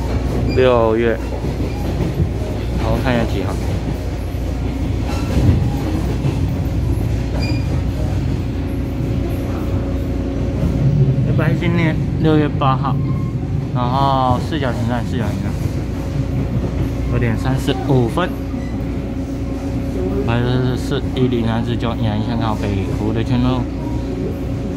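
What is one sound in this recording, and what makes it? An electric commuter train rumbles along the track, heard from inside.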